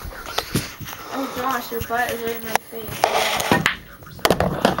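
Pool balls clack together.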